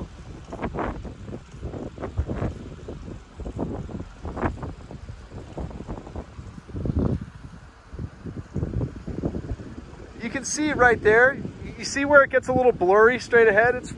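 Wind gusts outdoors, rumbling against the microphone.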